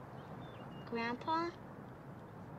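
A young girl speaks briefly.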